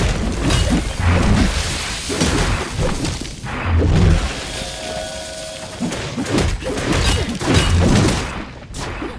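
Deep booming blasts rumble.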